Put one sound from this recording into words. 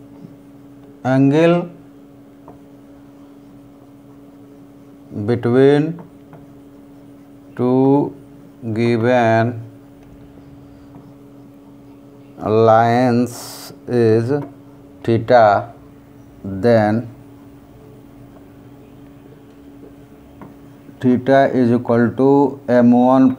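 A man speaks calmly in short phrases with pauses, close to a microphone.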